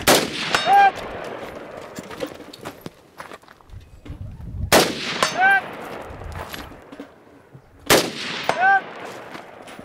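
A steel target rings with a sharp clang after a shot.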